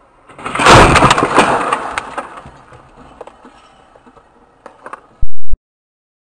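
Broken glass rattles and patters onto the car's windscreen and bonnet.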